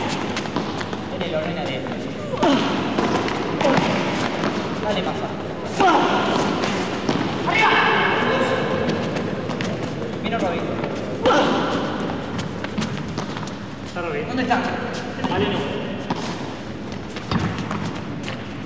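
Paddles strike a ball back and forth with sharp pops.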